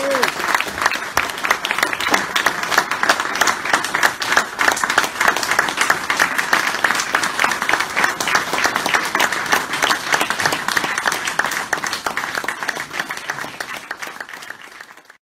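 An audience applauds loudly and steadily, then the clapping fades away.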